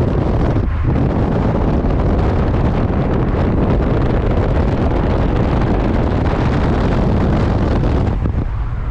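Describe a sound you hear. Wind rushes loudly past a moving car.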